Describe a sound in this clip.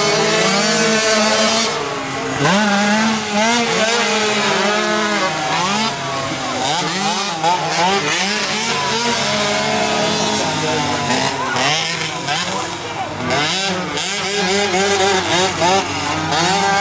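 Small quad bike engines whine and rev up and down nearby, outdoors.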